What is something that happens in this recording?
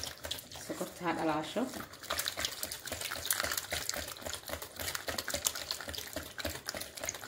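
A whisk clinks and scrapes rapidly against a bowl, beating a thick batter.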